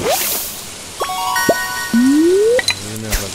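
A short bright chime melody plays.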